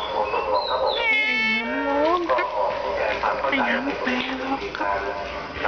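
A cat meows loudly up close.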